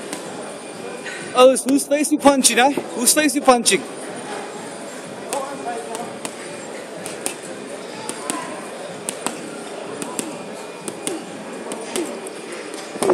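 Gloved punches thump against a heavy punching bag.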